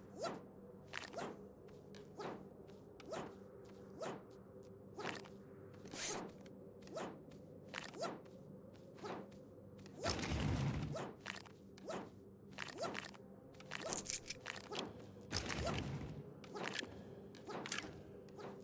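Video game gunfire pops in short, repeated bursts.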